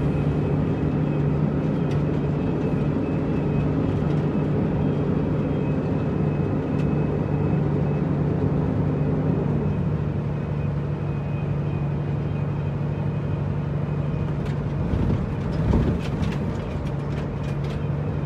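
A heavy truck's diesel engine rumbles steadily.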